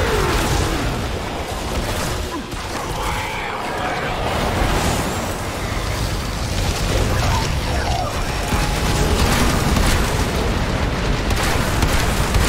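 Gunfire and energy blasts crackle and boom in rapid bursts.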